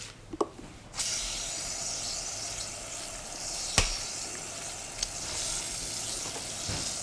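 Water sprays from a shower head and splashes into a basin.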